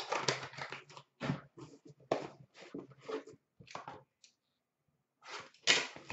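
A cardboard box rustles as hands open it.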